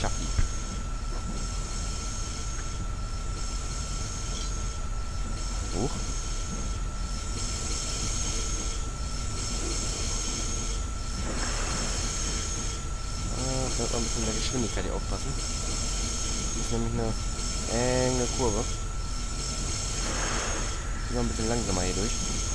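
A steam locomotive hisses and rumbles steadily.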